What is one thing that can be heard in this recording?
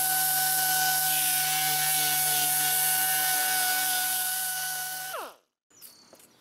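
An air-powered orbital sander whirs steadily with a high hiss as it grinds a surface, then winds down.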